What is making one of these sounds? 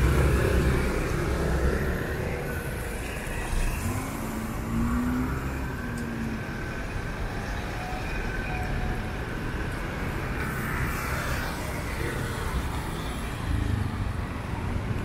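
Traffic rumbles steadily outdoors.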